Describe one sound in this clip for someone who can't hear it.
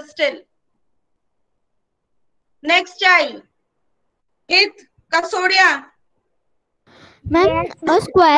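A woman speaks calmly in bursts through a computer microphone, as on an online call.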